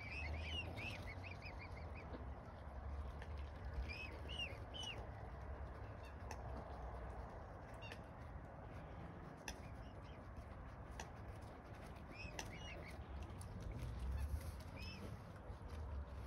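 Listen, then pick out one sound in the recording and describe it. A young swan peeps in short, high calls.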